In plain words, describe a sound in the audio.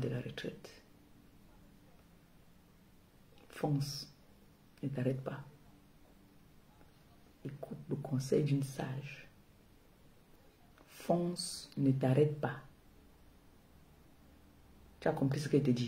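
A woman speaks calmly and close by, in short bursts with pauses.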